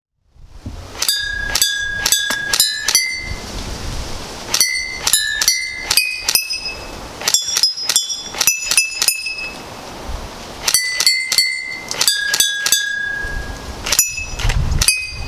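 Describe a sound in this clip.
Glass bottles ring out with clear clinks as pellets strike them.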